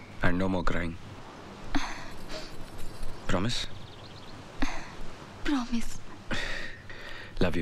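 A young woman speaks softly at close range.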